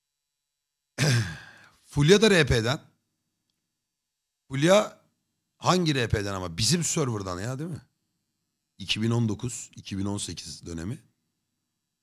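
A man speaks casually in bursts into a close microphone.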